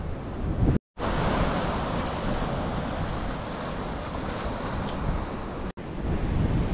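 Waves wash against rocks below.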